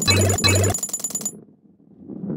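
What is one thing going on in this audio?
A bright coin chime rings out twice in quick succession.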